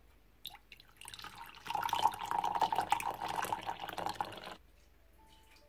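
Coffee pours into a mug.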